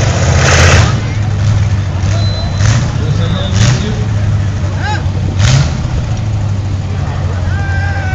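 A car engine idles roughly nearby.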